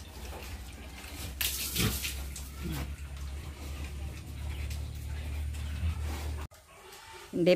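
Pigs grunt and shuffle in a pen.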